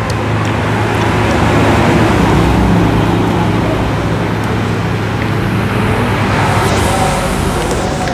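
Hands crack crab shells and pull seafood apart.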